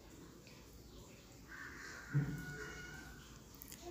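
Milk splashes as it is poured into a pot.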